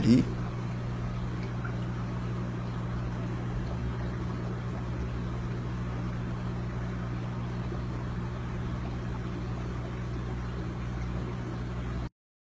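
An aquarium pump hums steadily.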